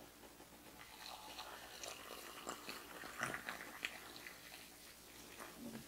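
Hot water pours into a mug.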